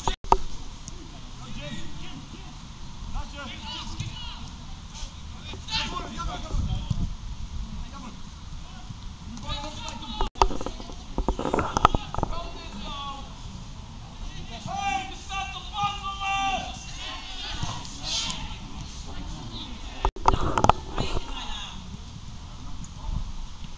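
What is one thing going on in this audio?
Young men shout to each other across an outdoor football pitch.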